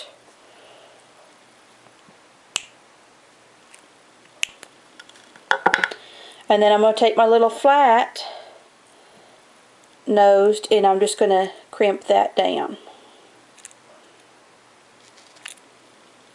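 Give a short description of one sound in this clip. Small metal pliers click against a tiny wire ring.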